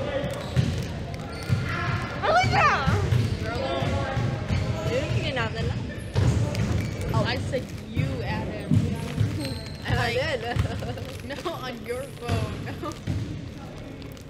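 Teenage girls talk and laugh together close by, in a large echoing hall.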